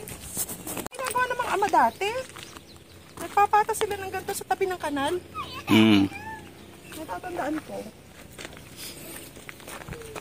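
A middle-aged woman talks with animation close by.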